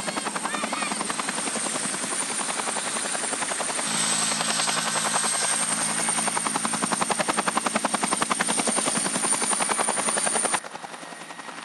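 A helicopter's rotor blades thump rapidly and steadily close by.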